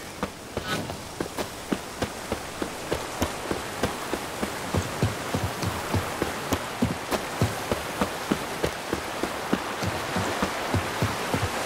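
Horse hooves thud in a quick, steady rhythm on a dirt path.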